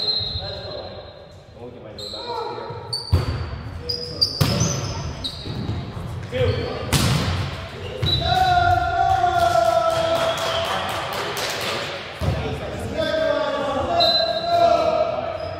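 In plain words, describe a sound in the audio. Sneakers squeak on a hard gym floor.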